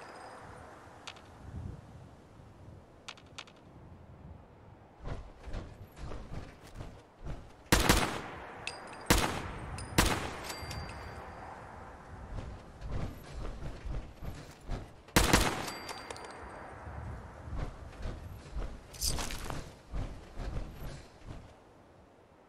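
Heavy metal footsteps thud steadily.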